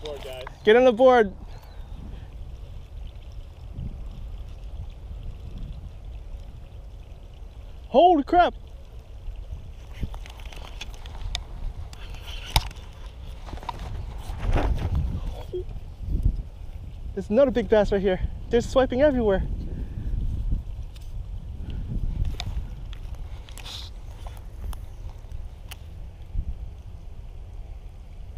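A fishing reel clicks as its handle is turned.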